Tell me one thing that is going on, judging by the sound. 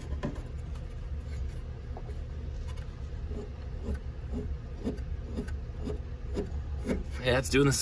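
A metal pulley clicks and rattles as a hand turns it.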